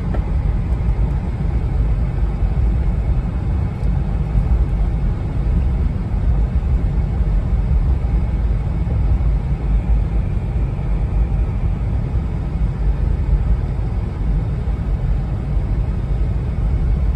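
Tyres rumble steadily on the road.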